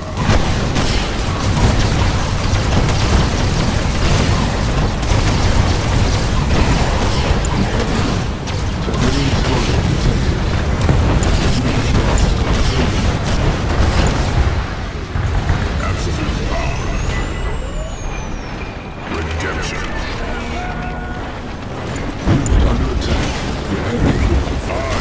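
Laser beams and gunfire crackle in a battle.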